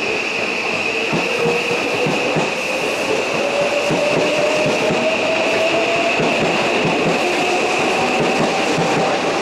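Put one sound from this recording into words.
An electric express train pulls away, its motors whining higher as it speeds up.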